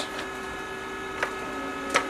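A button on a charger clicks.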